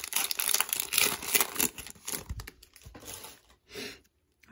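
A plastic card wrapper crinkles and rustles close by.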